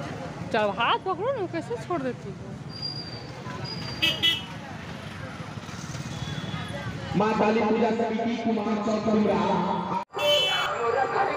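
People chatter nearby in a busy outdoor crowd.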